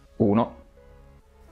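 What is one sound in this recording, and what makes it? A man hums a short note close by.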